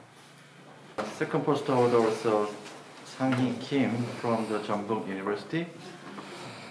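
A middle-aged man reads out clearly nearby.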